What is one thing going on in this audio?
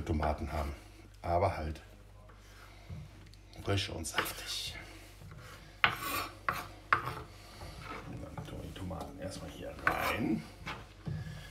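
A knife chops tomatoes on a wooden board with sharp taps.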